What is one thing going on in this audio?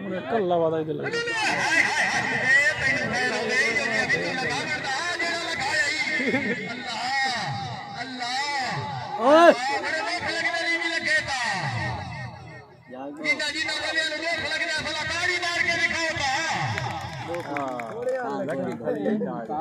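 A man commentates with animation through a loudspeaker, heard outdoors.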